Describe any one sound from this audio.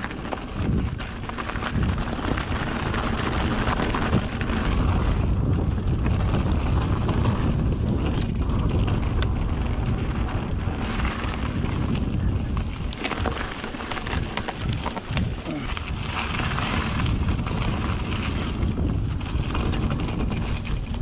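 A bicycle frame and chain rattle over bumps.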